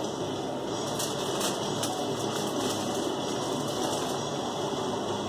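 A plastic container rustles as a man handles it.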